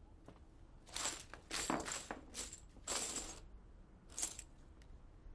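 Coins clink as a hand sorts through them.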